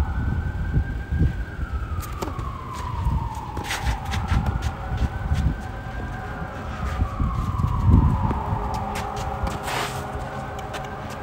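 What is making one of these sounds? Sneakers scuff and patter on a hard court.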